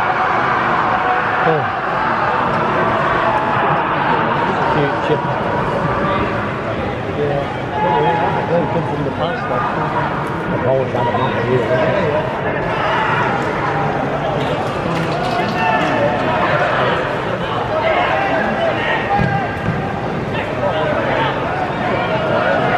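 Young men shout and call out across an open pitch, echoing faintly in a large empty stadium.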